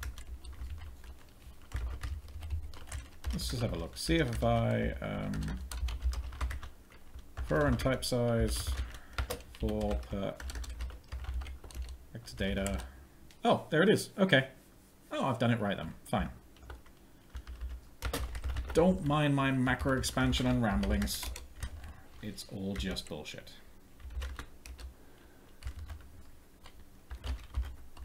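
Computer keys click as a man types.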